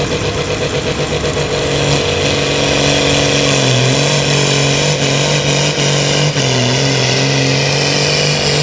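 A tractor engine roars loudly at full throttle, close by.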